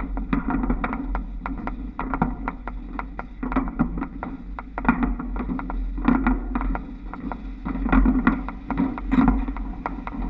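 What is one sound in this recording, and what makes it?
Trolley poles rattle and click along overhead wires.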